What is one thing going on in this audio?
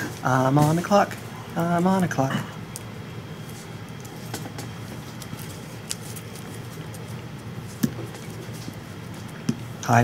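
Playing cards rustle and slap softly as hands shuffle them.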